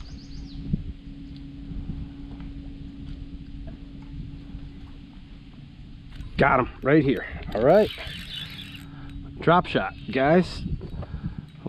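An electric boat motor hums softly.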